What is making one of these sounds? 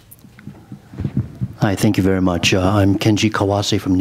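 A woman asks a question through a microphone.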